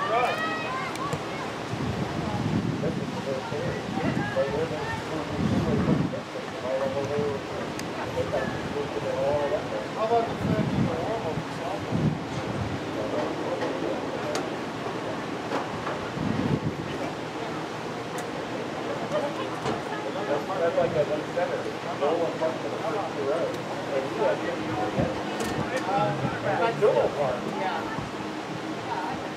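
Spectators talk and call out nearby in the open air.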